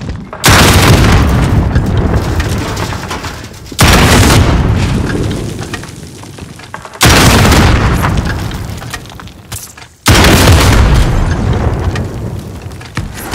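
A rocket launcher fires again and again, each loud blast rumbling and slowly dying away.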